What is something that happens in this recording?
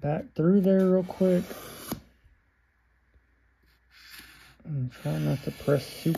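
A pencil taps lightly on a hard board.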